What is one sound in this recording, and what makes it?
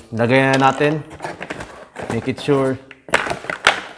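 Plastic parts clatter and knock as they are handled.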